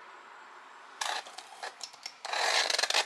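A knife cuts through cardboard tape.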